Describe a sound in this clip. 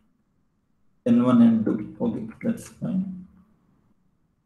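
A young man speaks briefly through an online call microphone.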